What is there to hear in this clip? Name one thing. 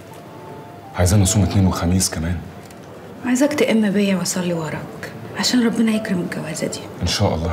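A young woman speaks softly, close by.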